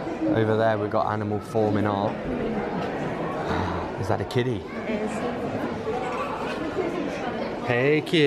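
Adult men and women talk nearby in an echoing hall.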